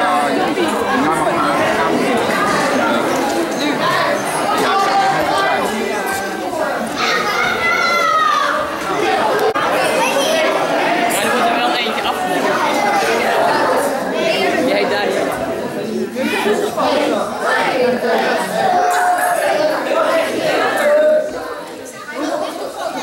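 A crowd of children and adults chatter loudly in a large echoing hall.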